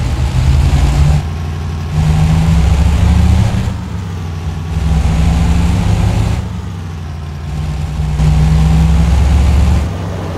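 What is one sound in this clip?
A truck engine rumbles low and steady, rising and falling in waves.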